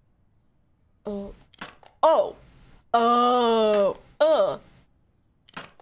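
A young woman speaks and exclaims with animation, close to a microphone.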